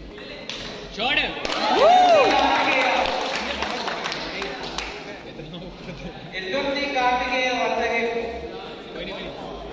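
A crowd of young people cheer and shout in an echoing hall.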